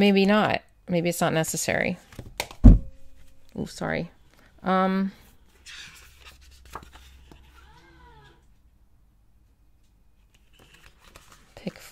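Stiff paper pages rustle and flap as they are turned.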